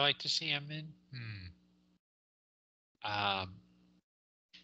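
A man talks in short bursts over an online call.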